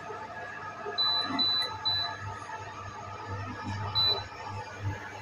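An electric cooker beeps several times as its button is pressed.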